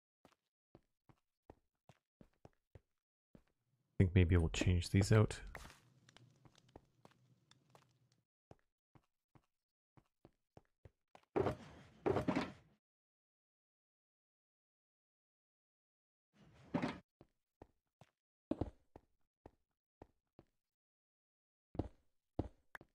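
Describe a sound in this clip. Footsteps tap on stone in a steady rhythm.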